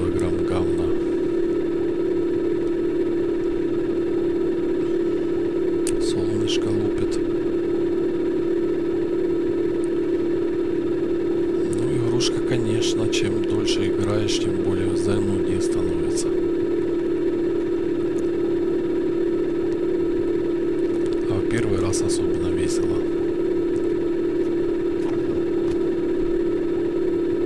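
A hovering vehicle's engine hums steadily.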